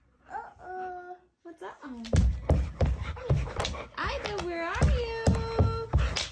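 A dog whines and yelps in high, wavering cries.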